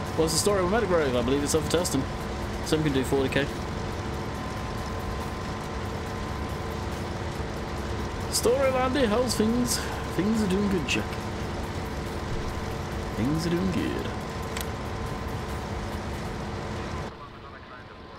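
A combine harvester engine hums steadily.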